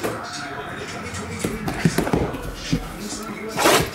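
Cardboard boxes slide and rustle across a table.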